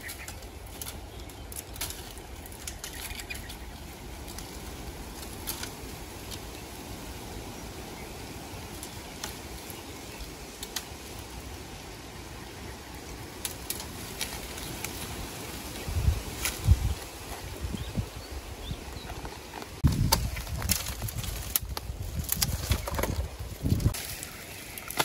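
Dry burnt stalks snap and crackle as a person breaks them by hand.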